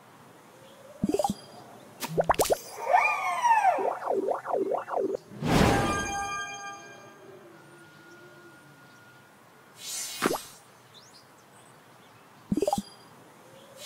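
Bubbles pop with short bursts.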